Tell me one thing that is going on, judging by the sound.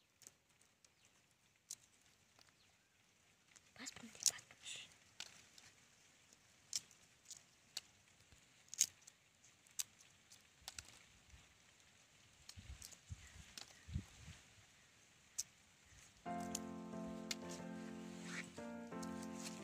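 Fingers peel and tear the skin of a fruit with soft crackling snaps.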